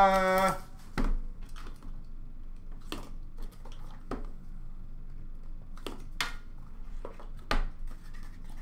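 Hands tap and handle a cardboard box with soft knocks.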